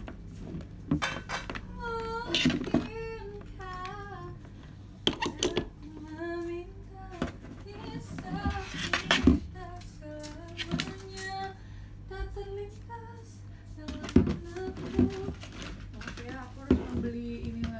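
A young woman sings close by.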